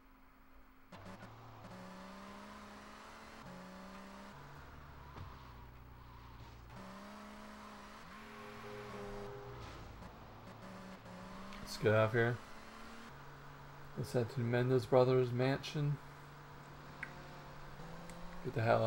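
A car engine revs and shifts gears as the car speeds along.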